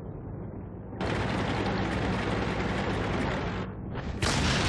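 A wooden building crashes and splinters as a tank smashes through it.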